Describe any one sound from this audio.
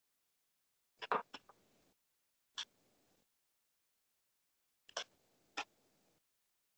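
Playing cards tap softly onto a table, one at a time.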